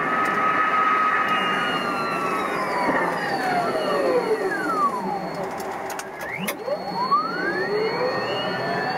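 A train's electric motor whines, sliding down in pitch as the train slows.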